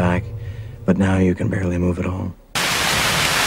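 A man sings close by.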